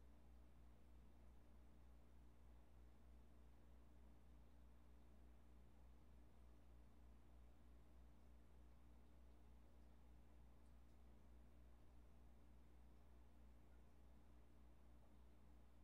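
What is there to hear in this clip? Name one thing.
Water flows and hums steadily.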